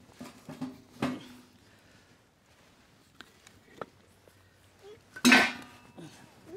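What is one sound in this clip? Wooden logs knock together.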